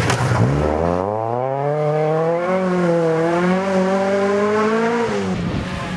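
Tyres crunch and scatter gravel on a loose road.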